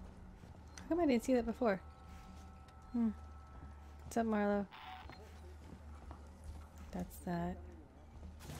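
A young woman speaks briefly and calmly into a close microphone.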